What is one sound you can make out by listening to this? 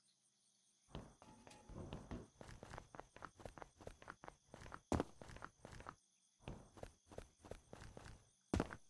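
Footsteps tap quickly on a hard surface.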